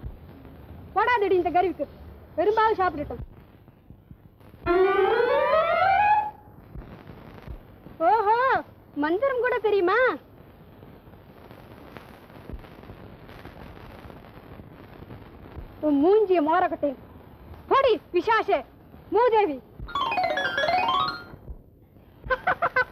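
A young woman sings in short, high, wavering phrases.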